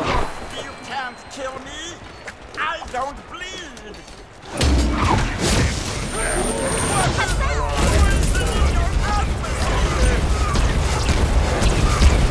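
Swords slash and clang in a fight.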